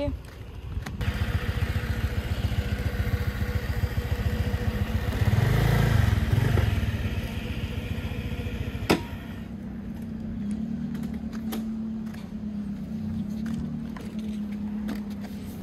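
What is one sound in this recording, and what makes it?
A motorcycle engine idles nearby with a steady low throb.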